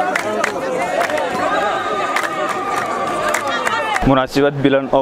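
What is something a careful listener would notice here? A crowd of women and men sings together loudly outdoors.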